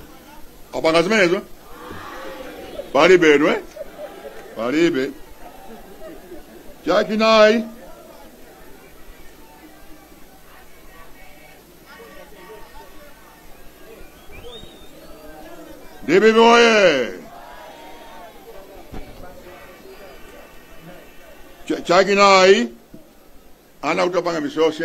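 A man speaks loudly into a microphone over loudspeakers, in short forceful bursts with pauses.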